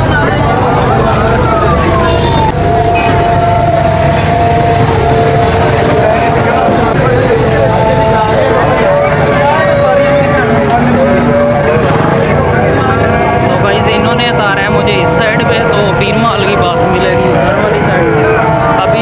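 Busy street noise with traffic and crowd chatter fills the background.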